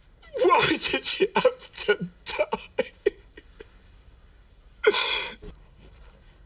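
A younger man speaks quietly.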